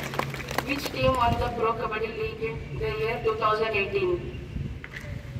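A boy speaks calmly into a microphone through a loudspeaker.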